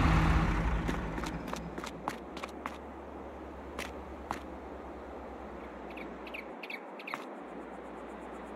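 Footsteps click on hard ground.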